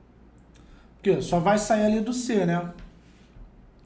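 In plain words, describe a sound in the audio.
A young man speaks calmly and briefly into a close microphone.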